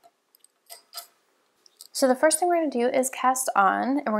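Wooden knitting needles click softly together.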